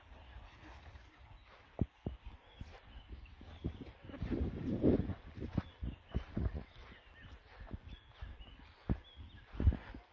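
Footsteps crunch on dry ground outdoors.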